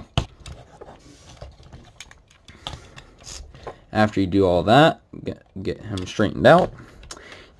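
Hard plastic parts of a toy figure click and tap as hands move them.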